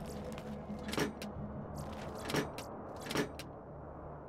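Metal locker doors clank open.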